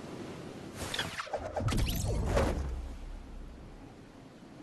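A glider snaps open with a loud whoosh.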